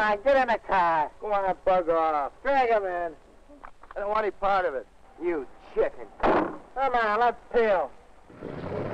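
Young men talk with each other close by.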